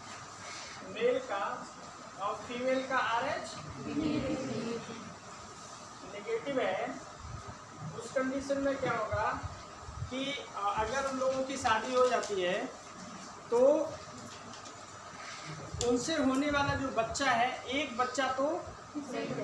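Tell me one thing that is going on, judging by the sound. A man lectures calmly in a room with a slight echo.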